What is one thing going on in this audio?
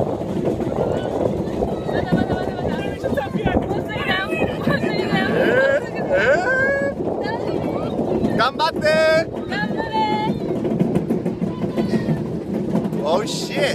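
A young man laughs and talks excitedly up close.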